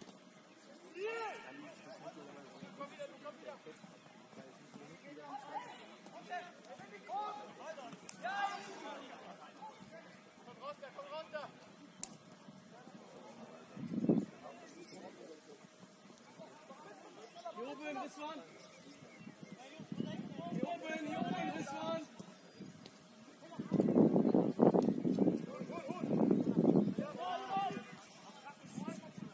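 Young men shout to each other from across an open outdoor field.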